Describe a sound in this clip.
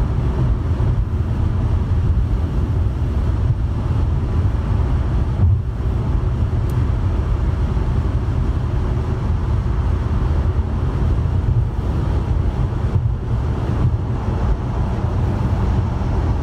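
Tyres roar on the highway.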